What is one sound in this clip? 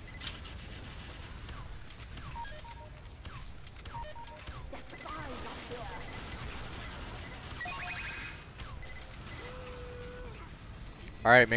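Distant weapons fire and crackle in a battle.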